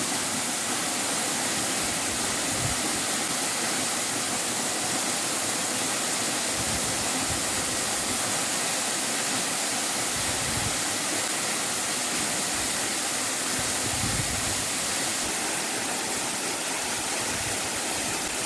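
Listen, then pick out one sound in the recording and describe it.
A waterfall roars steadily, splashing onto rocks.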